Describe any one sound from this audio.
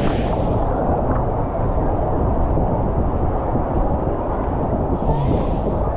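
Water rushes and gurgles along a slide.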